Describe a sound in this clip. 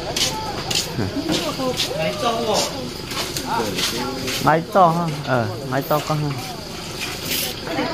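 Water splashes as a metal basin is scrubbed by hand.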